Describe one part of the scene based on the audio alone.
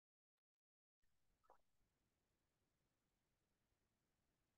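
A woman speaks quietly over an online call.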